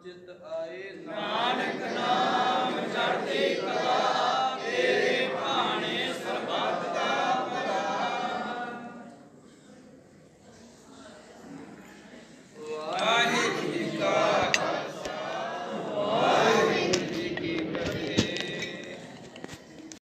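A man chants a prayer aloud.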